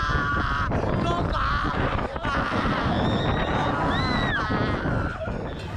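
Riders on a swing ride scream and shout in the distance.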